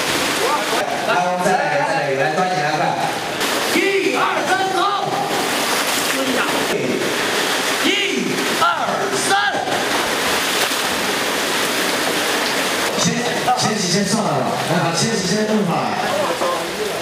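A man calls out instructions loudly nearby.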